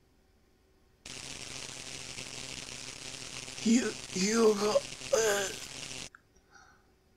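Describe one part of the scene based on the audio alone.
Electricity crackles and buzzes steadily.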